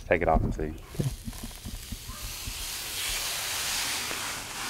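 A thin plastic film crinkles as it is peeled off.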